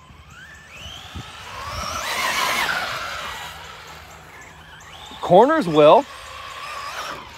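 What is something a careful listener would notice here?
Tyres scrub and spray loose sand.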